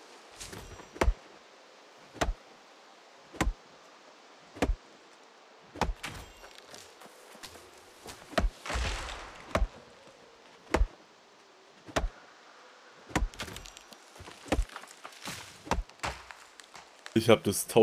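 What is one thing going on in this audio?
An axe chops into wood with sharp, regular blows.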